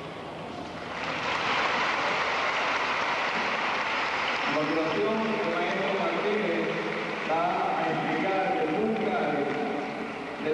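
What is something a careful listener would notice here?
A large crowd applauds and cheers in a big echoing hall.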